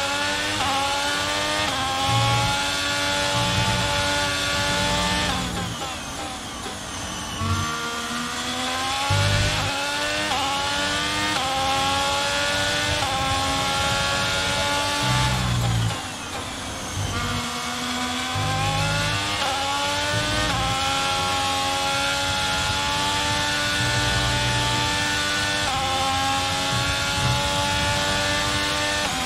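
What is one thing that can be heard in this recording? A racing car engine screams, rising in pitch through each gear and dropping when slowing for corners.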